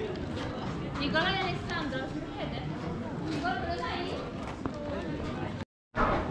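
Several people chat nearby outdoors.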